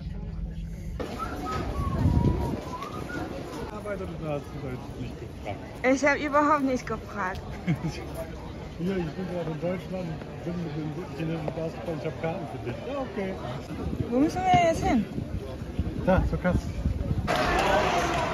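A crowd of people chats outdoors.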